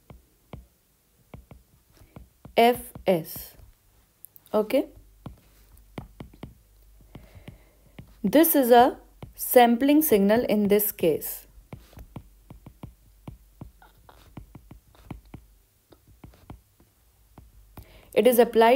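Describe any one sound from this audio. A stylus taps and scratches on a glass tablet.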